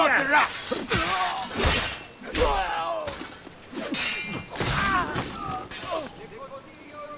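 Metal blades clash and ring in a fight.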